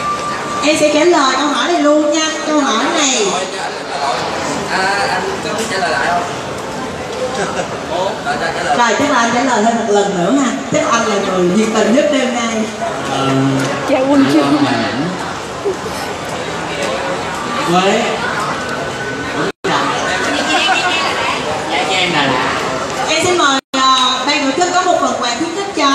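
A young woman speaks with animation into a microphone, heard through a loudspeaker.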